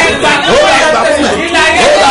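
A middle-aged woman sings along.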